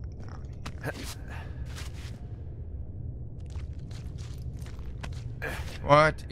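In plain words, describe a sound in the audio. Hands grab onto a rock ledge with a soft scrape.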